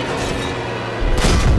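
An explosion booms on the ground.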